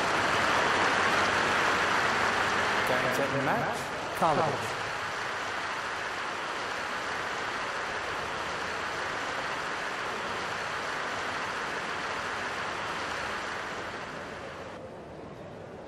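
A large crowd applauds and murmurs in an open stadium.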